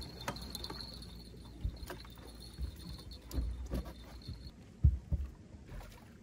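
Footsteps thump and shuffle on a boat's deck.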